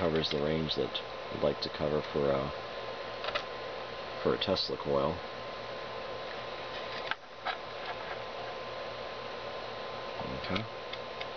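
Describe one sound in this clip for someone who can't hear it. A faint, steady electronic tone hums.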